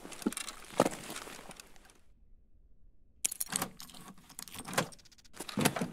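A door handle clicks and a door creaks open.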